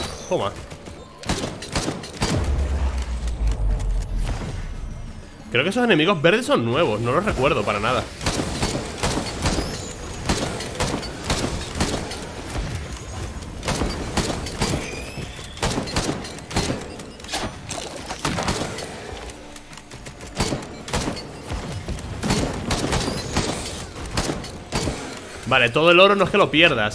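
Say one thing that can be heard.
Video game blasts and zaps crackle rapidly.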